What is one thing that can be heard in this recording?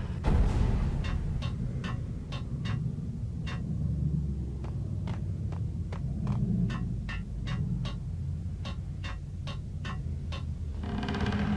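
Footsteps clank quickly on metal stairs.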